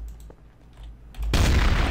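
A shotgun clicks as shells are loaded into it.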